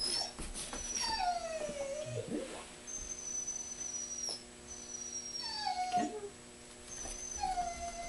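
A dog whines in high, rising and falling tones.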